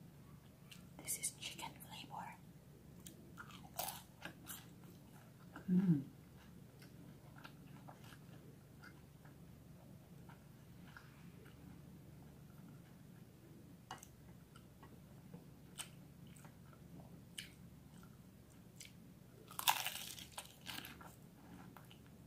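A young woman crunches crispy fried food close to a microphone.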